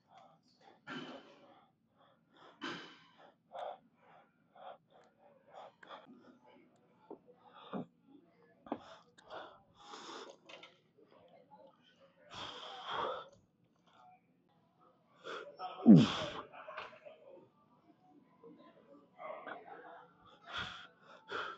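Metal weight plates and a barbell clank.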